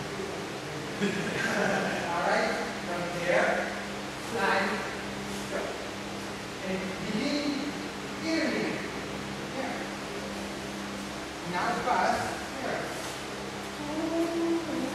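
A man speaks calmly in a large echoing hall.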